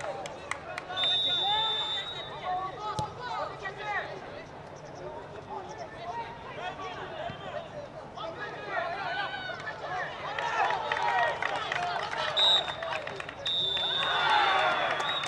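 A referee's whistle blows loud and shrill.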